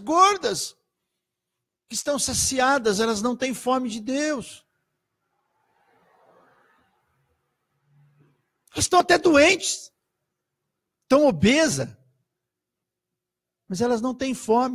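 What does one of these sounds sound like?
A middle-aged man speaks with animation into a close microphone, in bursts with pauses.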